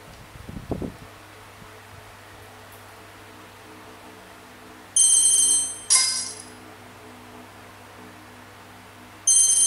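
A tablet game plays soft, quiet background music.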